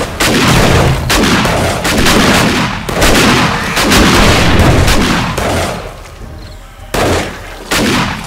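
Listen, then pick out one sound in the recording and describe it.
A shotgun fires in loud, booming blasts.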